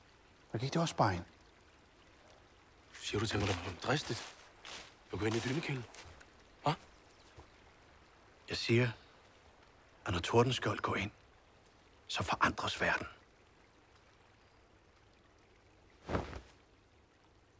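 A man speaks calmly and tensely nearby, in short bursts.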